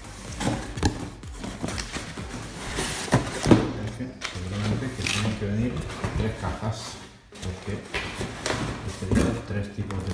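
Cardboard flaps scrape and rustle as a box is opened by hand.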